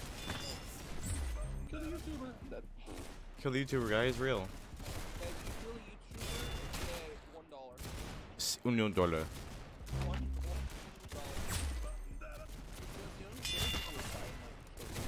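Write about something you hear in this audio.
A young man talks with animation close to a microphone.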